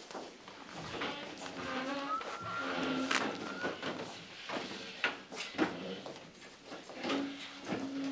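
An older man speaks quietly on a phone nearby.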